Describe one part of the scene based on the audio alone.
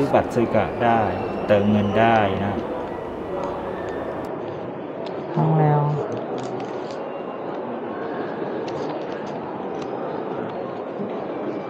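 A large indoor hall hums with a steady murmur.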